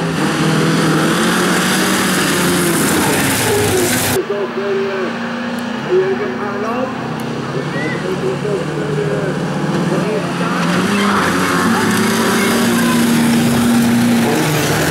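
Several race car engines roar and rev loudly.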